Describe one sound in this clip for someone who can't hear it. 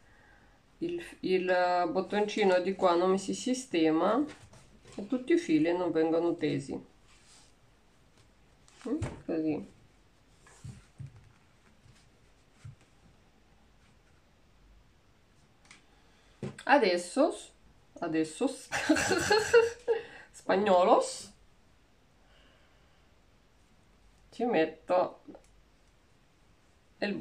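A woman talks calmly close by, in short bursts with pauses.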